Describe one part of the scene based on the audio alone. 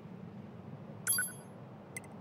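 A bright chime sounds as a choice box pops up.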